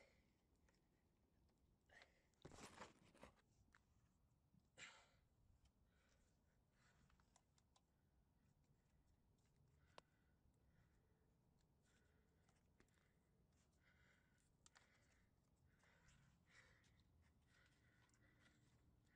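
A man speaks quietly close by.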